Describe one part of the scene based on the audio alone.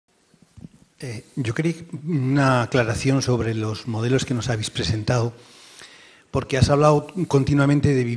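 A man speaks calmly at length into a microphone in a large room.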